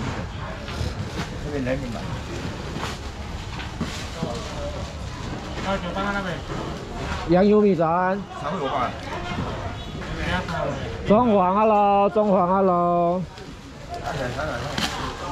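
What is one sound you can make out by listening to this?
People chatter in a busy outdoor crowd.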